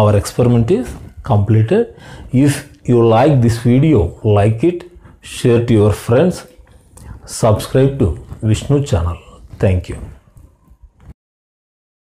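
A man speaks to the listener in an explaining manner, close to a microphone.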